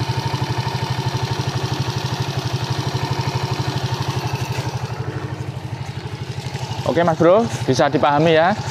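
A small motorcycle engine idles with a steady, rapid putter close by.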